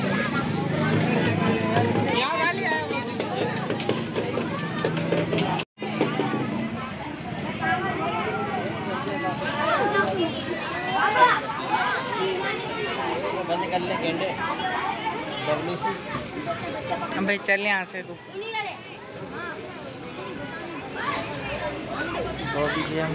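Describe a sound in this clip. A crowd of men talks and calls out loudly close by, outdoors.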